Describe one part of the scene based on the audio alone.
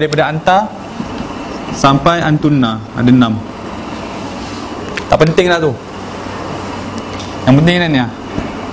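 A man speaks in short phrases, teaching.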